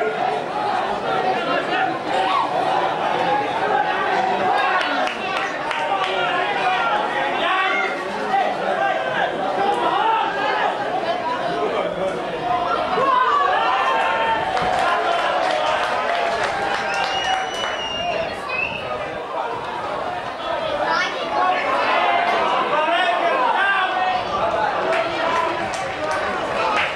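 Young men shout and call out to each other outdoors across an open field.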